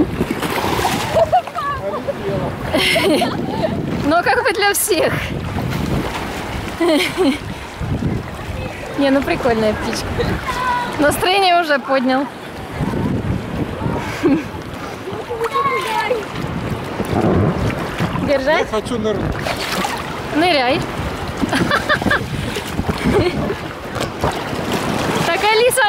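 Water splashes as a girl swims.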